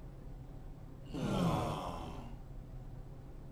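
A young man grunts and laughs, close by.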